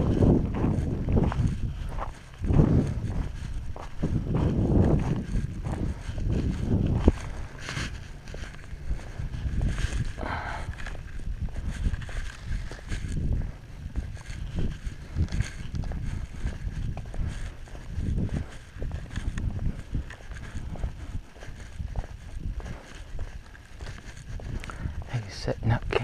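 Skateboard wheels rumble steadily over rough pavement.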